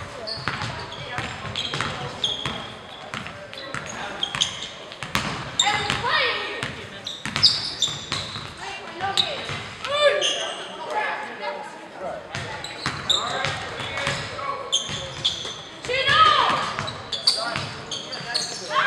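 Young players shout and call out across an echoing gym.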